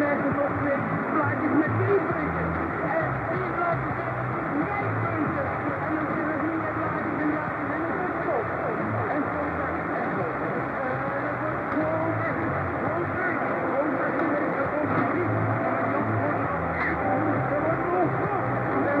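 A shortwave radio plays a faint, noisy broadcast through hiss and warbling interference.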